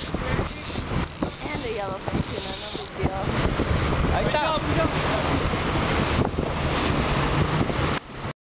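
Waves slosh and splash against a moving boat.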